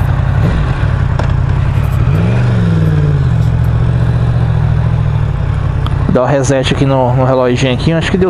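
Wind rushes past as the motorcycle rides.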